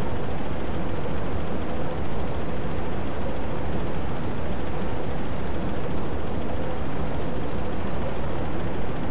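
A low, steady rumble of ocean waves washes on without a break.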